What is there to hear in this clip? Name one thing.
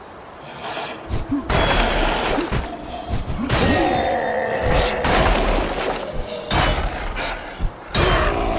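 Weapons clash and slash in a fierce fight.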